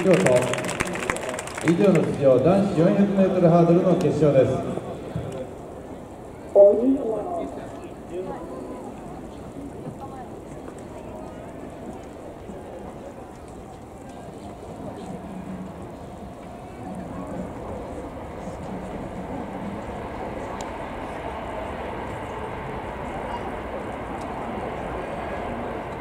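A small crowd murmurs far off in an open stadium.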